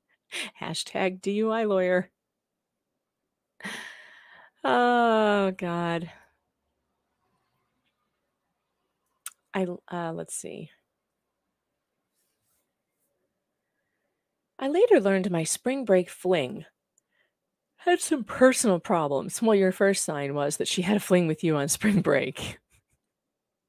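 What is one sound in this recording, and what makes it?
A woman reads aloud with animation into a close microphone, with pauses.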